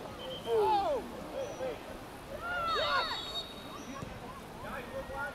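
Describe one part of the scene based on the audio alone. Young players shout to one another across an open field.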